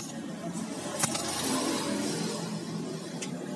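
An arc welder crackles and hisses in short bursts.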